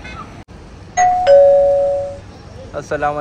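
A car horn honks twice nearby.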